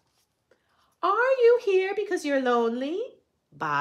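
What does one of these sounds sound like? A woman reads aloud close by in a lively, expressive voice.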